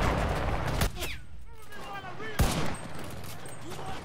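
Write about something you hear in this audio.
A rifle bolt clicks and clacks during a reload.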